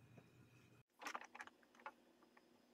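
Metal pieces clatter softly on a wooden bench.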